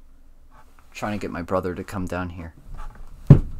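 A young man speaks up close, with animation.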